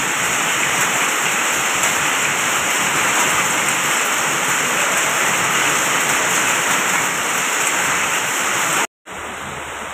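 Rain splashes on wet ground.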